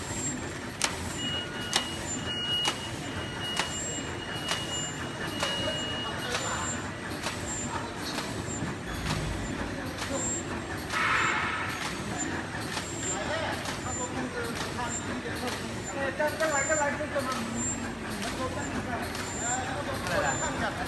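A packaging machine runs with a steady mechanical hum.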